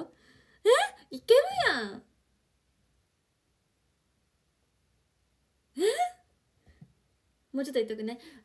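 A young woman talks cheerfully and close, with rising, lively exclamations.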